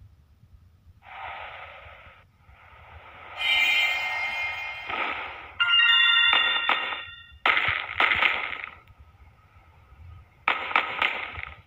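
Video game sound effects whoosh and chime.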